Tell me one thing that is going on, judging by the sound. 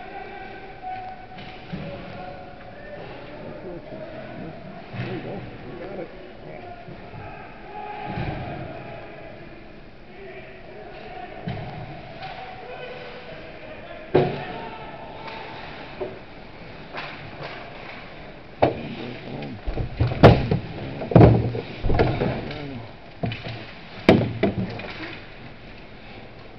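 Skates scrape across ice in a large echoing rink.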